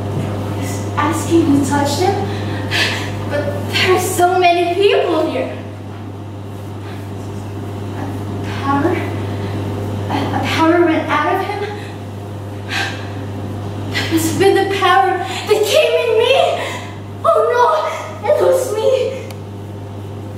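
A young woman speaks with animation close by, in bursts.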